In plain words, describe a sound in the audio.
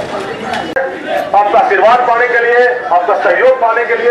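A man's voice blares through a loudspeaker in the street.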